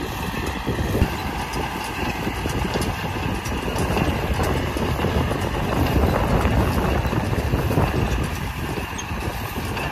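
A hay baler clatters and thumps as it presses bales.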